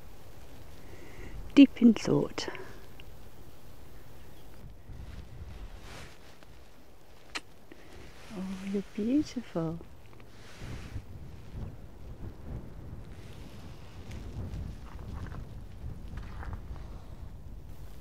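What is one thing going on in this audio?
A pony chews and munches on plants close by.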